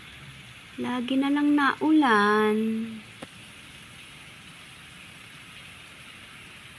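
Light rain falls steadily outdoors.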